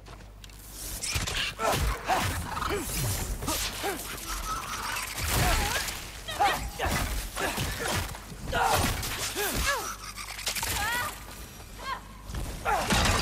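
Blows and impacts thud in quick succession.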